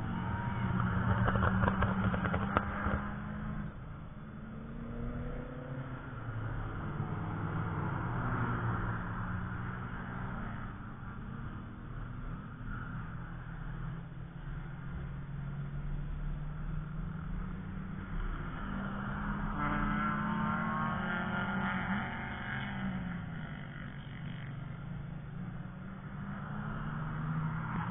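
Race car engines drone and rev in the distance.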